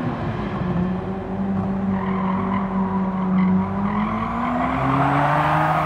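Tyres squeal through a tight corner.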